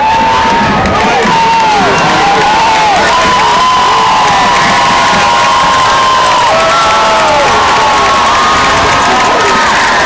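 A large crowd cheers and shouts outdoors.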